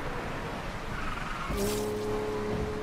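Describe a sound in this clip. Tyres squeal briefly through a bend.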